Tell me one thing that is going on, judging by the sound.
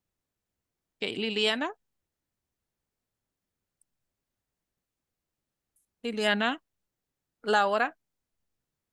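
An adult speaks in short phrases over an online call.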